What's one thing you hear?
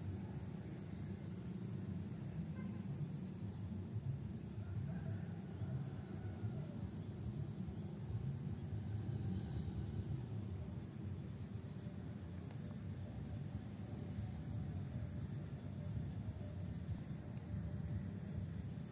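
Wind blows steadily outdoors, rumbling low.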